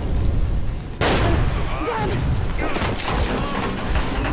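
A fiery explosion booms and roars.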